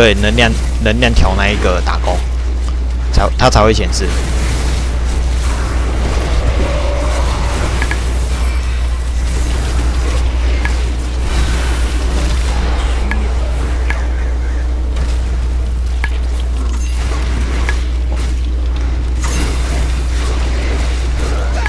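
Fiery spells crackle and burst in a fast fantasy battle.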